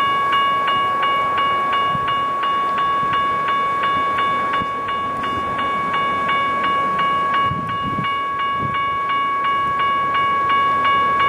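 A locomotive engine rumbles as a train approaches.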